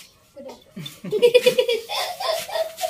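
A boy laughs.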